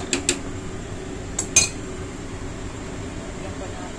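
Thick porridge bubbles in a pan.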